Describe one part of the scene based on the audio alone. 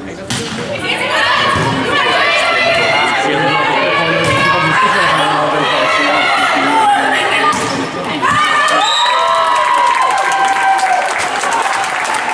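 Young women players shout to each other on court.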